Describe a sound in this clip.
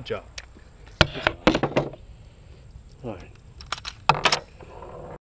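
A pistol's metal parts click and clack as it is handled.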